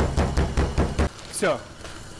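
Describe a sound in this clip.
A rolling pin crushes nuts inside a plastic bag.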